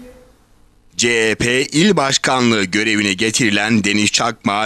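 A man speaks steadily and clearly, close by.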